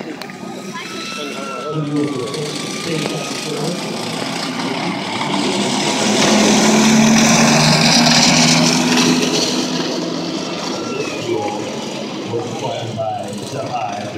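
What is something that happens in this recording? A small tracked motorcycle engine putters and rumbles as it drives past, loudest up close and then fading away.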